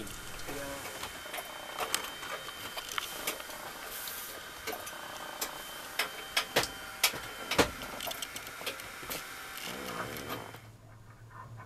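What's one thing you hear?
Objects knock and clatter inside a cupboard.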